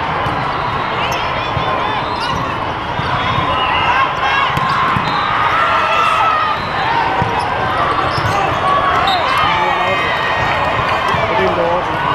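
Squeaky shoes squeal on the court floor.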